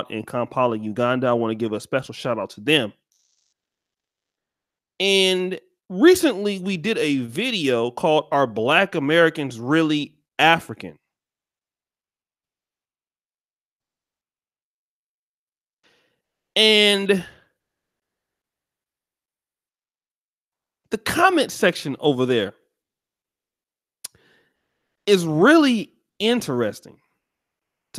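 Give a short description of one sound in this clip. A man speaks calmly and closely into a microphone, with long pauses.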